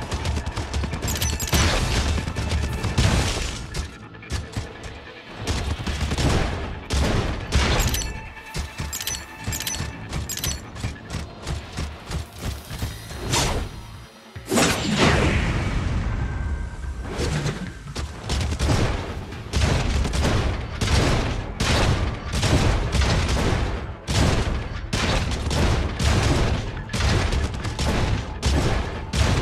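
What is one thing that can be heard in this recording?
A robotic creature's metal feet clank rapidly as it runs.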